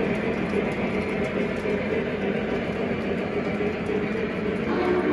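Model train wheels click over rail joints.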